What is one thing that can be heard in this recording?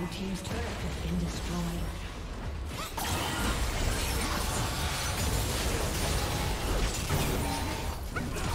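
Spell effects and weapon hits clash in a fast fantasy battle game.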